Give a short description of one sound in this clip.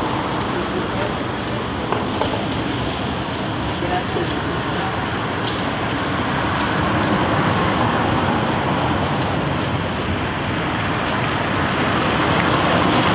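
Traffic and street noise hum steadily outdoors.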